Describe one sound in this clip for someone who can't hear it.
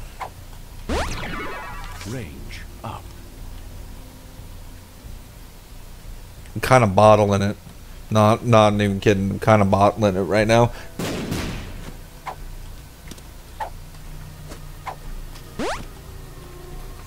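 Soft electronic pops sound as a video game character fires shots.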